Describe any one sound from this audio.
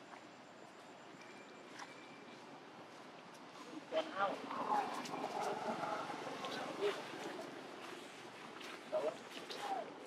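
Dry leaves rustle as monkeys scamper over them.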